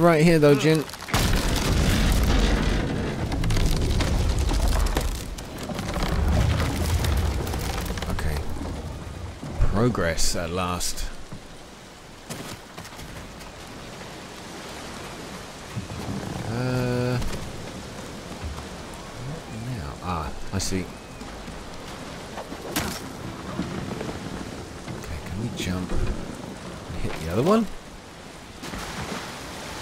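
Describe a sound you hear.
Waves crash against rocks.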